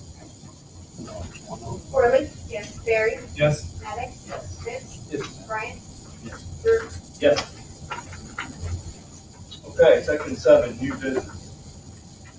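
A man speaks calmly through a microphone, heard from across a room.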